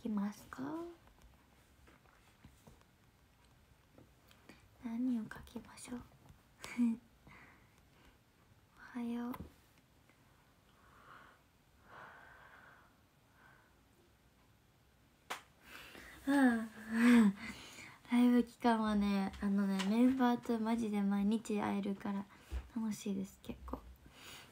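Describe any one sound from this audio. A young woman speaks softly and calmly into a nearby microphone.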